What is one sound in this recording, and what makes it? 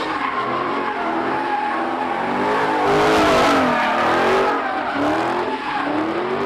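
A car engine revs loudly and roars up and down.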